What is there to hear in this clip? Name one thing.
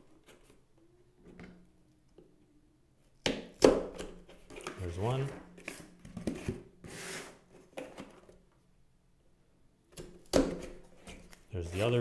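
A plastic bolt clicks as it is twisted into cardboard.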